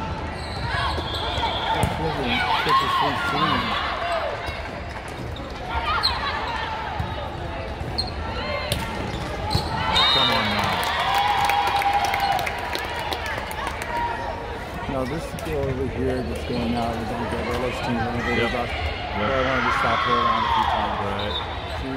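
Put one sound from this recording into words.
Many voices of players and onlookers shout and chatter through a large echoing hall.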